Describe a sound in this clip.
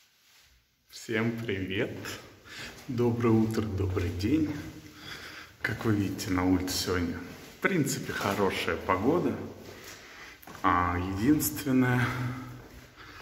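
A young man talks with animation close to a phone's microphone, in a small echoing room.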